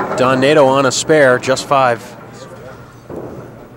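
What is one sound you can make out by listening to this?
A bowling pin clatters as it rolls into the gutter.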